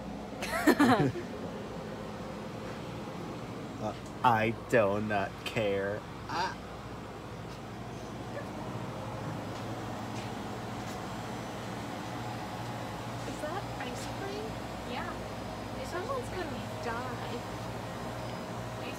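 Refrigerators hum steadily.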